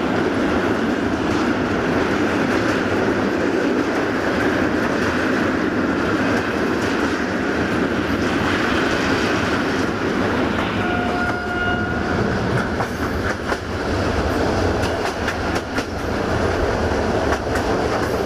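A train rumbles and clatters steadily over a steel bridge and along the track.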